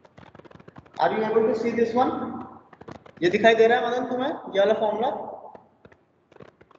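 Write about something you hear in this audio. A man explains with animation, heard through a microphone on an online call.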